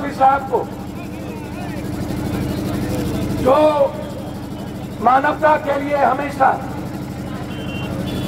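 A large crowd murmurs in the distance.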